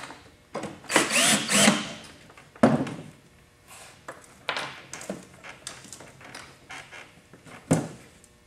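A metal clamp clanks and rattles.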